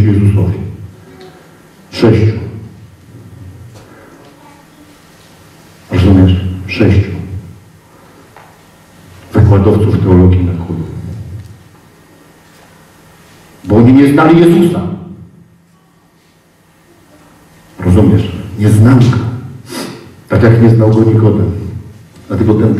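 A man speaks with animation in bursts, heard through a microphone in a large echoing hall.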